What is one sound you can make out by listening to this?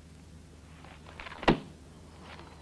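A gun clicks sharply.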